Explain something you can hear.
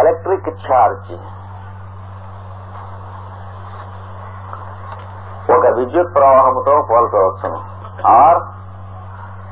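An elderly man speaks in short bursts, close by.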